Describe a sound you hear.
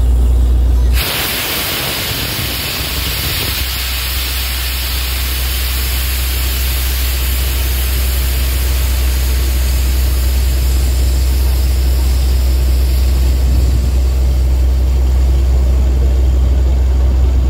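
Muddy water splashes and gushes from a borehole.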